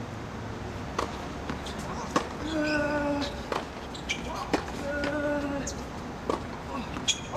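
A tennis ball is struck with sharp pops of a racket, outdoors.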